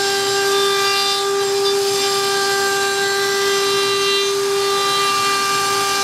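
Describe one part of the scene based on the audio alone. A router bit cuts into wood with a rough hiss.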